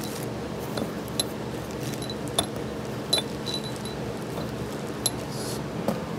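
Steel bolts clink together.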